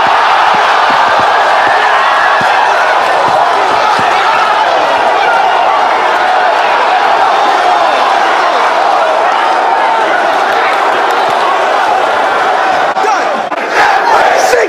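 A large crowd cheers and shouts loudly in a big hall.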